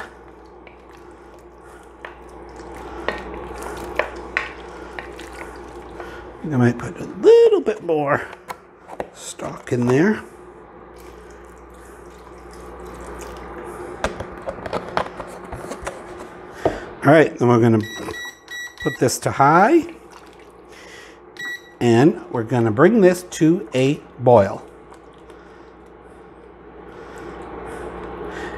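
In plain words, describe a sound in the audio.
A wooden spoon scrapes and stirs in a pot.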